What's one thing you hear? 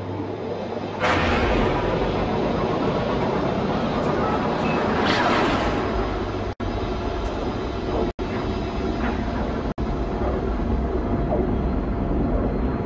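A spaceship's drive kicks in with a loud rushing whoosh that keeps roaring.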